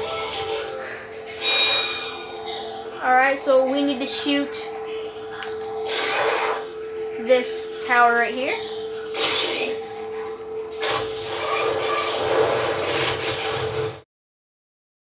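Video game sound effects and music play through a television speaker.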